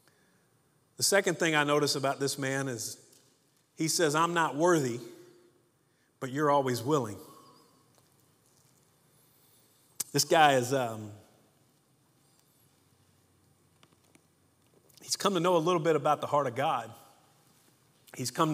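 A middle-aged man speaks slowly and deliberately into a microphone, with pauses between phrases.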